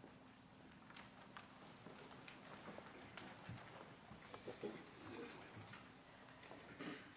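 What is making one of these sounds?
A mixed choir sings softly in an echoing hall.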